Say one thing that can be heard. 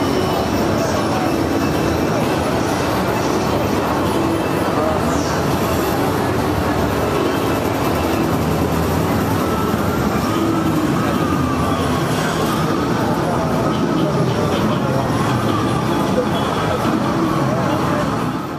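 Upbeat electronic game music plays loudly from an arcade machine.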